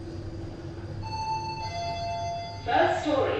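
An elevator chime rings out with two tones.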